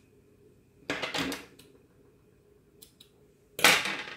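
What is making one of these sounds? Scissors clatter down onto a glass surface.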